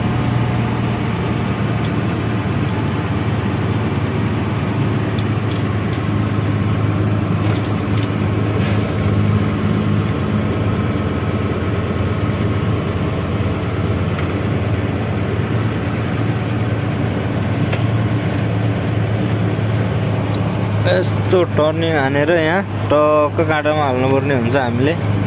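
A vehicle's engine hums steadily from inside the cab while driving.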